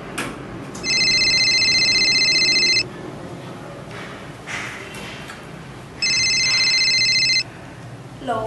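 A mobile phone rings with a repeated electronic tone.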